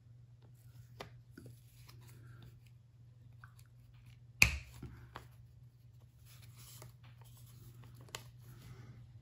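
Plastic parts knock and click as they are handled.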